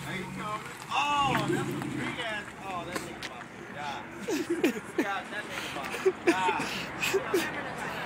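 Young people shout and yell excitedly close by, outdoors.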